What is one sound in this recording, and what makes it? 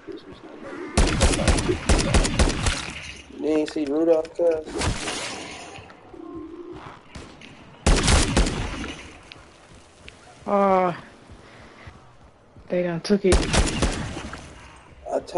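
Rapid gunfire bursts loudly in a video game.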